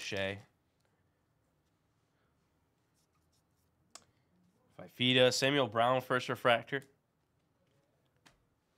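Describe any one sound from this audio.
Cards slide and rustle softly in hands.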